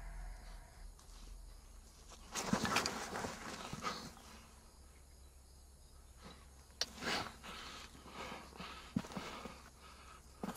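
Dry brush rustles and crackles as a man moves through it.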